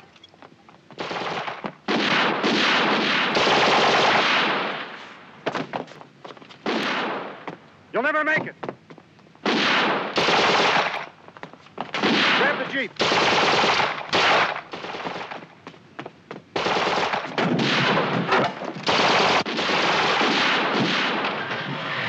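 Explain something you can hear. Automatic gunfire rattles in long, loud bursts.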